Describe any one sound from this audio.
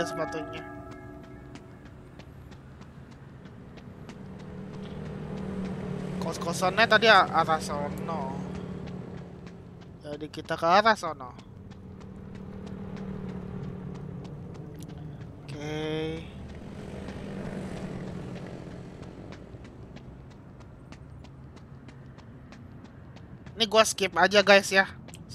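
Footsteps run steadily on pavement.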